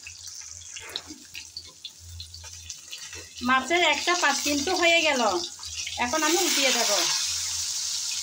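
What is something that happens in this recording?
Hot oil sizzles and crackles steadily.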